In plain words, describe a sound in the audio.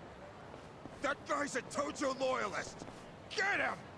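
A man shouts an order angrily.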